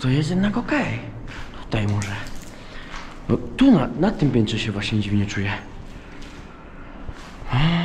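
Footsteps crunch on gritty debris.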